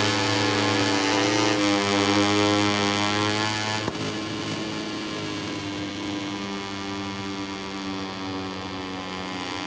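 A motorcycle engine screams at high revs, then drops in pitch as it slows for a bend.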